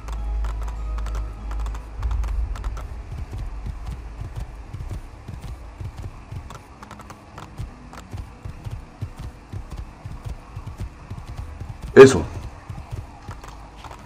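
A horse gallops with rapid hoofbeats on a dirt track.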